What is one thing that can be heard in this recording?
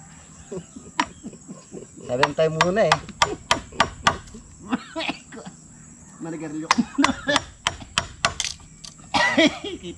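A metal hoe chops into dirt with sharp repeated blows.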